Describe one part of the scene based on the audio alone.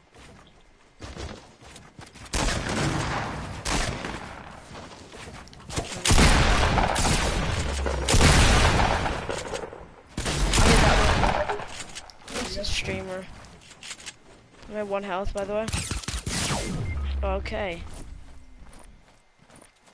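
Gunfire and blasts crack loudly in bursts.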